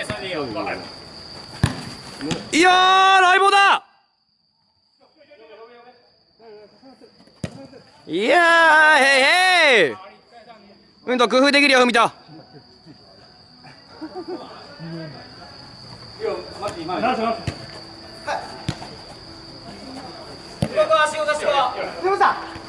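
A foot kicks a futsal ball on artificial turf.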